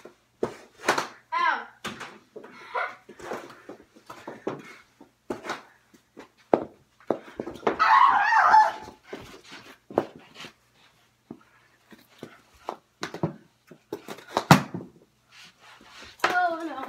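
Boys talk and shout excitedly nearby.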